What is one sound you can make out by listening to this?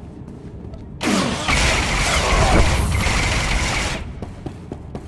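An explosion booms with a roaring blast.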